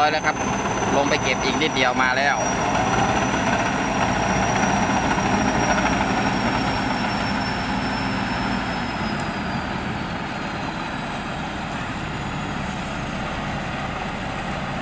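A combine harvester engine rumbles steadily as the machine drives closer.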